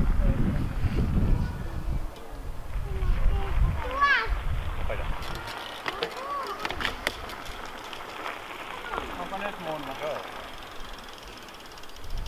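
Bicycle tyres roll over gravel.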